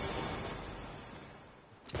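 A pickaxe strikes rock in a video game.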